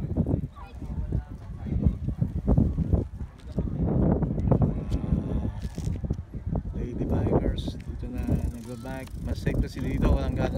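A bicycle rolls along on concrete.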